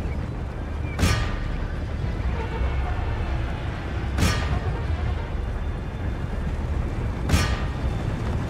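Cannons boom in the distance.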